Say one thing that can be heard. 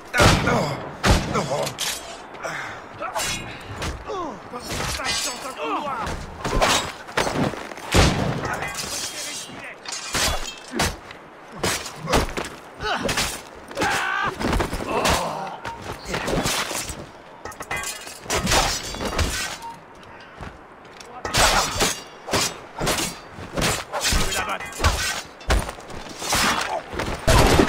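Blows thud against bodies.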